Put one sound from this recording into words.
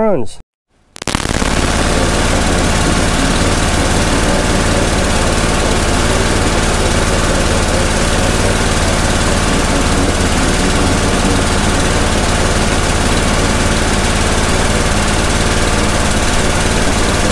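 A jet of water hisses steadily from a pressure washer wand.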